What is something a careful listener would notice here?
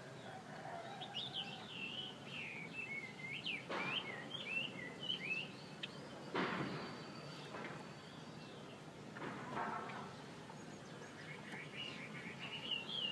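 A small bird sings a twittering, warbling song close by.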